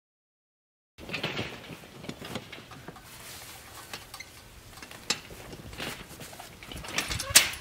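A metal frame clanks and scrapes as it is dragged over grass.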